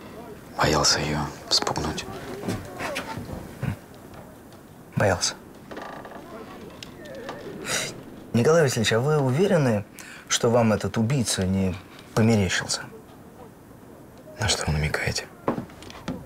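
A young man speaks quietly and tensely, close by.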